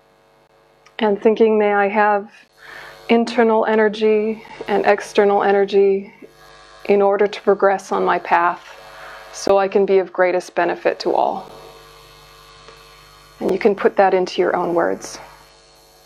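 A young woman speaks calmly and slowly into a microphone, with pauses.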